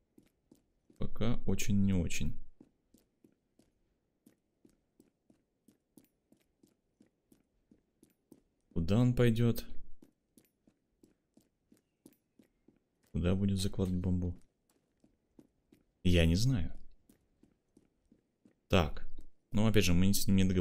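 A young man speaks with animation in short bursts, close to a microphone.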